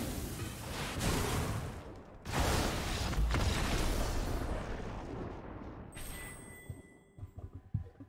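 A game's magic effect whooshes and crackles loudly, then fades.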